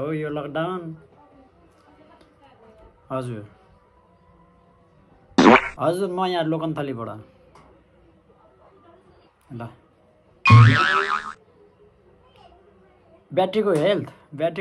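A young man talks on a phone close by, calmly, in short bursts with pauses.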